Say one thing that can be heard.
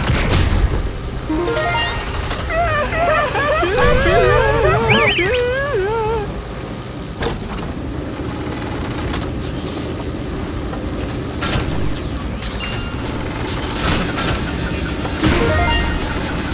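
Video game guns fire in short, sharp blasts.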